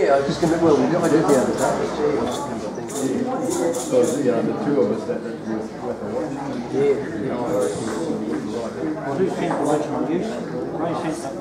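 An electric guitar plays a lively tune through an amplifier.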